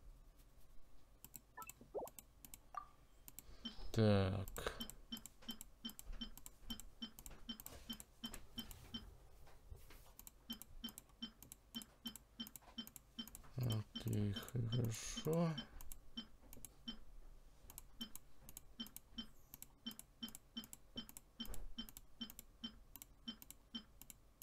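Short soft menu clicks tick rapidly and evenly as items are picked one after another.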